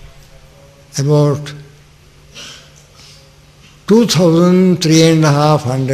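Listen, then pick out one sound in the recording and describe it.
An elderly man speaks slowly and with feeling into a microphone.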